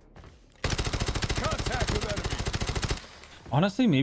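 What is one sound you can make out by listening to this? Rapid gunfire rattles in a steady burst.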